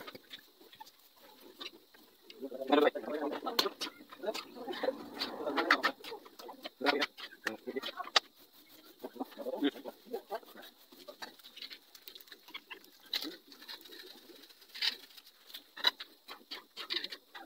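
A metal spoon scrapes and clinks against a frying pan.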